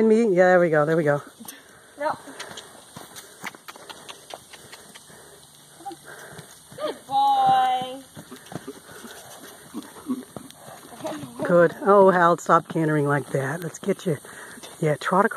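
A horse's hooves thud on soft dirt as the horse trots and canters.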